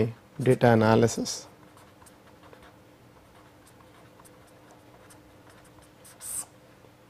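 A marker pen squeaks and scratches across paper.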